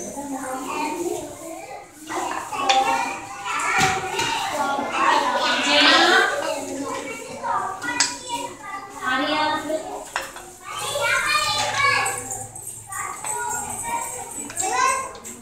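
Plastic rings clack onto a hard floor.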